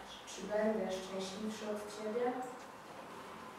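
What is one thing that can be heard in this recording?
A young girl recites calmly into a large room.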